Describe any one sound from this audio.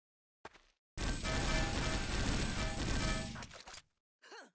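Rapid pistol gunfire rings out in loud bursts.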